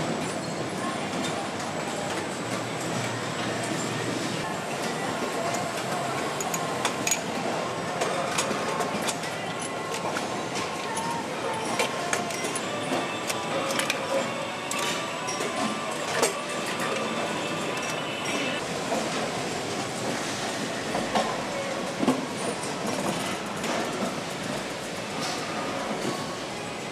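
Machinery hums through a large factory hall.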